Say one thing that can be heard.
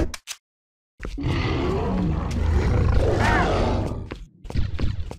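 A monster growls and shrieks loudly.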